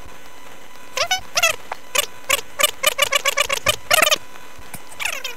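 A handheld radio chirps and squeaks in quick bursts.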